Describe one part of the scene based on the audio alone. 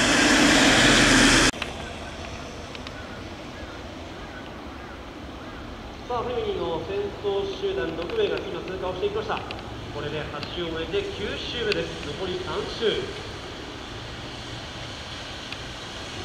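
Bicycle tyres hiss on a wet road.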